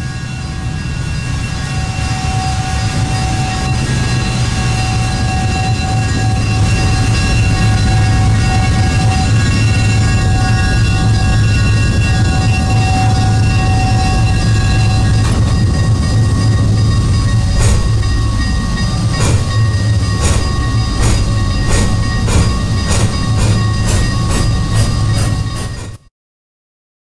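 A steam locomotive rumbles and chugs steadily.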